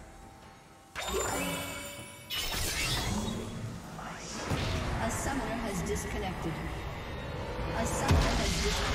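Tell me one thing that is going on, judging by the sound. Magic spell effects zap and crackle in quick bursts.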